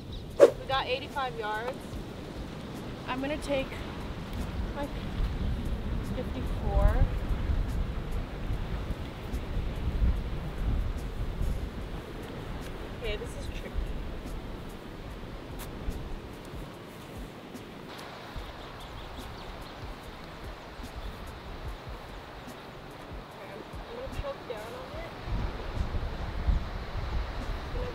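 Wind blusters across the microphone outdoors.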